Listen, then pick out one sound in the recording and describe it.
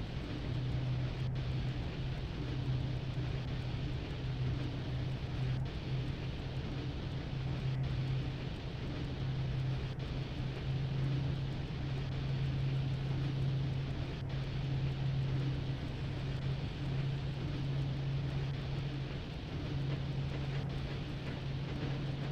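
A locomotive engine hums steadily with a low drone.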